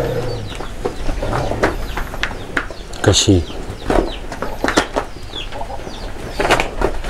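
Cattle hooves shuffle and thud on straw-covered ground nearby.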